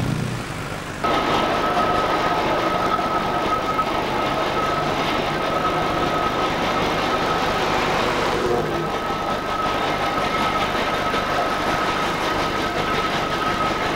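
A steam traction engine chugs and hisses.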